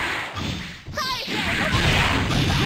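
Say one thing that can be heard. A lightning blast crackles and roars.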